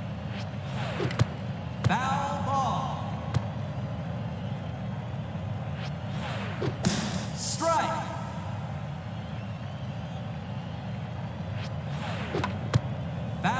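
A bat cracks against a baseball.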